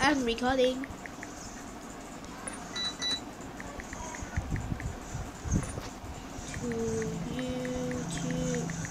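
Soft keyboard clicks tap out in quick bursts as someone types.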